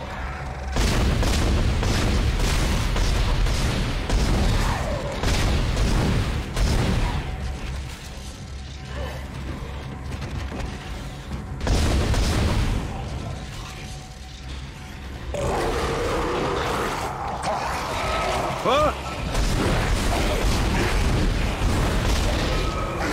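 Gunshots and blasts crack and boom in quick bursts.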